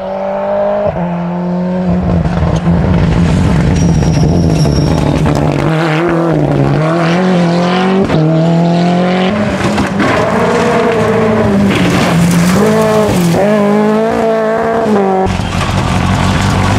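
Rally car engines roar loudly, revving up and down through the gears.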